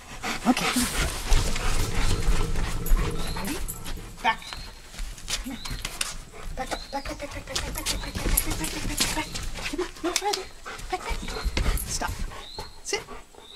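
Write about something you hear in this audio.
An elderly woman speaks calmly to a dog nearby.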